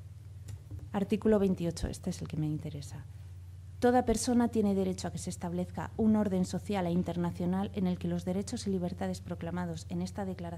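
A young woman speaks calmly into a microphone over a loudspeaker.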